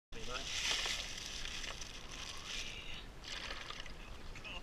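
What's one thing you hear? Ice cubes rattle and splash into a bucket of water.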